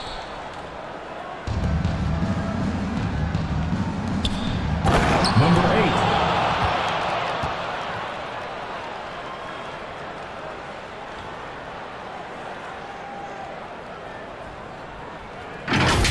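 A large crowd cheers and roars in an echoing arena, swelling loudly and then slowly fading.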